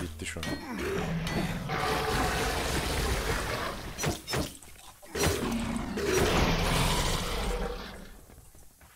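A magical blast hisses and crackles loudly.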